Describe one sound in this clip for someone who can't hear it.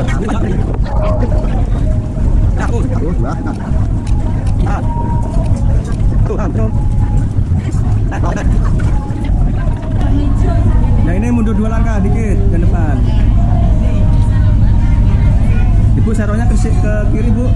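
A crowd of women and men chatter nearby.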